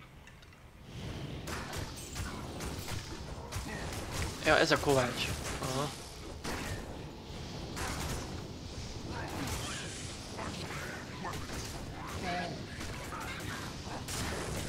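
Game combat sounds of blows and spells clash.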